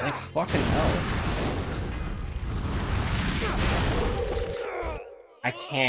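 Fiery blasts roar and crackle loudly.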